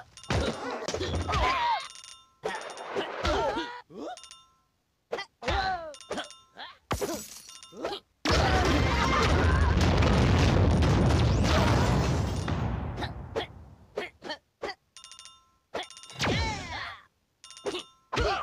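Game coins chime as they are collected.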